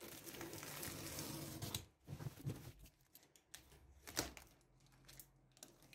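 Hands rub and pull at a cardboard box.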